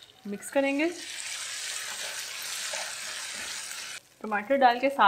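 Food sizzles and spatters in a hot pan.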